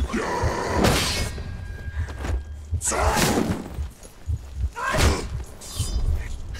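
Weapons clash and strike with heavy impacts.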